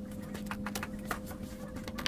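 Cloth rustles as it is handled.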